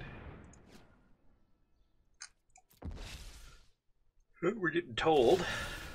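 A magical whoosh sounds as a spell is cast.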